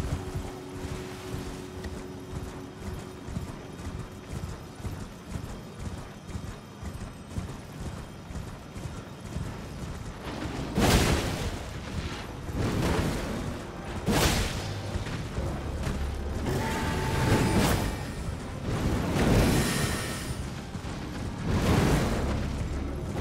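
Hooves gallop steadily over soft ground.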